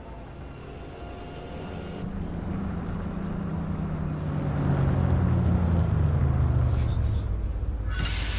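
A bus engine rumbles low and winds down as the bus pulls in and stops.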